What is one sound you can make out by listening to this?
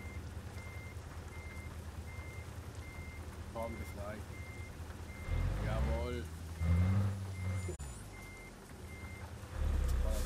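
A warning beep repeats at a steady pace.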